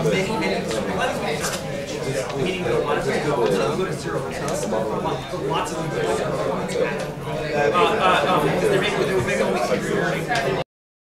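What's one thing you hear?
A crowd of young men and women chatter all at once in a room with a slight echo.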